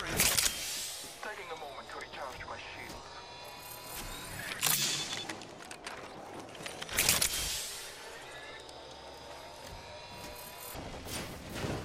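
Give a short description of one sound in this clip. A medical syringe hisses and clicks as it is applied.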